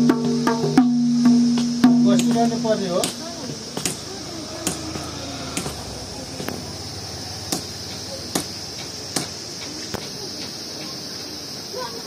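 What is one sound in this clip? A man taps on leather with sharp, spaced knocks.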